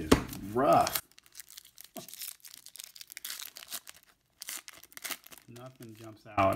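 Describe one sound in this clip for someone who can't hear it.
A foil wrapper crinkles and tears softly.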